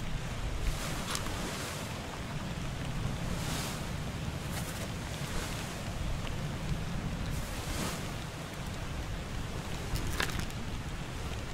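Paper pages rustle as a book's pages are turned.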